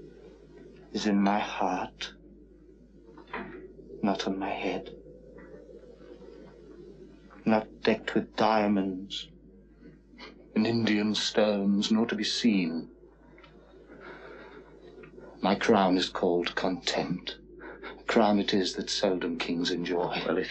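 A man speaks close by, with expressive pauses.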